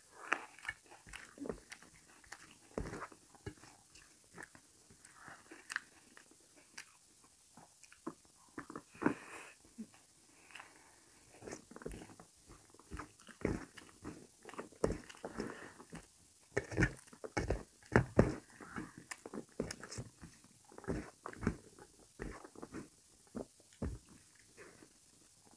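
A man eats noisily, chewing and smacking his lips up close.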